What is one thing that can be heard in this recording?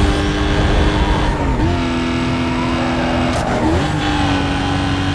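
A car engine roars at high revs, shifting gears as it speeds along.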